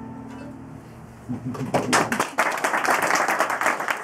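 A banjo is plucked.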